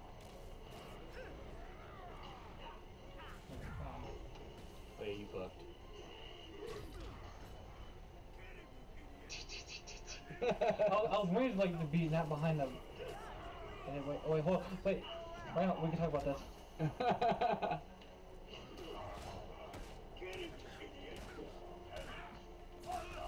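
Blows, crashes and explosions thud and boom in a video game fight.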